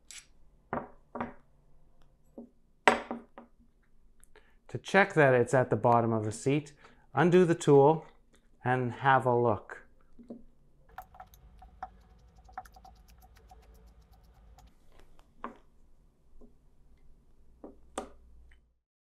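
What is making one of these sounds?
Metal parts click and clack as they are handled.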